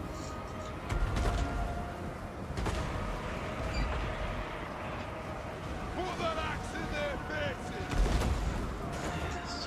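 Explosions boom in a loud battle.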